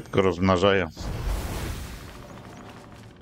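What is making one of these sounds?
Flames burst up with a rushing whoosh.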